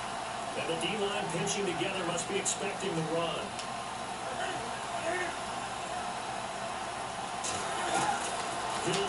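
A stadium crowd roars steadily through a television speaker.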